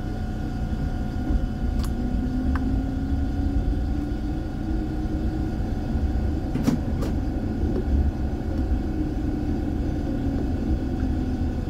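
A tram's motor whines, rising as it speeds up.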